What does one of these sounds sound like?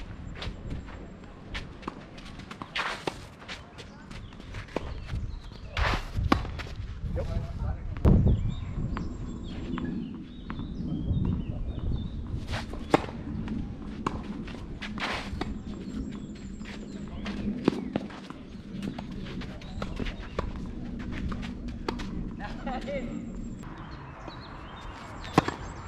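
A tennis ball is struck sharply with racquets, back and forth.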